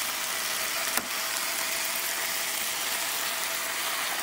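An egg cracks and drops into a hot frying pan.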